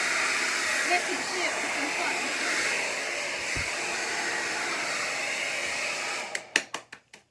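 A heat gun blows with a steady rushing whir.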